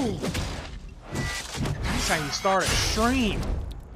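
A sword slashes into flesh with a wet thud.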